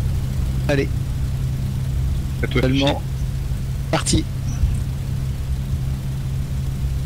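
A propeller engine idles with a steady low rumble.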